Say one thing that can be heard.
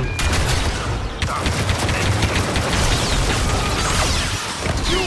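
A blaster pistol fires rapid laser shots.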